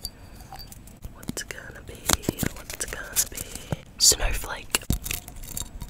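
Paper crinkles and rustles close to a microphone.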